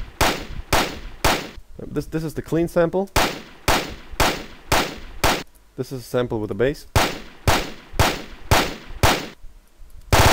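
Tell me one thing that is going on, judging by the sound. A recorded gunshot sample plays back over and over.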